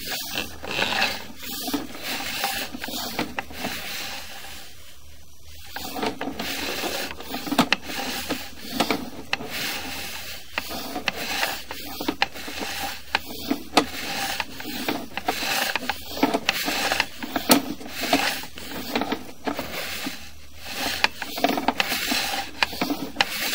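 Water splashes and sprays inside a pipe.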